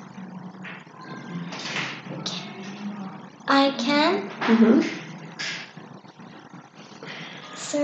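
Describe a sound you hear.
A young girl speaks close by, calmly.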